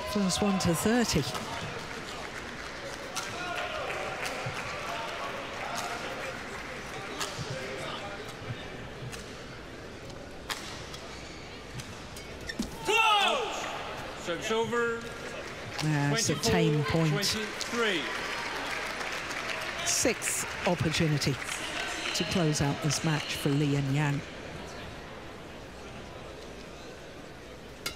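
A large crowd murmurs in an echoing indoor arena.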